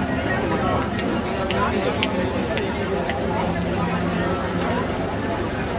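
A large crowd chatters and murmurs outdoors.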